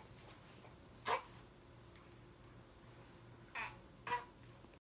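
A young girl makes short high voice sounds close by.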